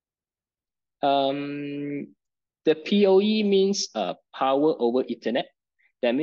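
A young man speaks calmly over an online call.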